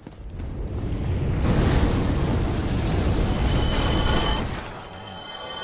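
Flames roar loudly in a rushing blast of fire.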